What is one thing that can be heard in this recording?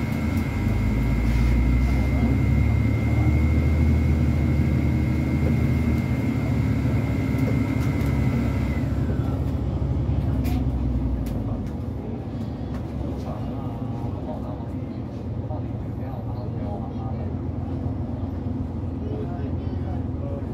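A bus engine rumbles and hums steadily from inside the bus, growing quieter partway through.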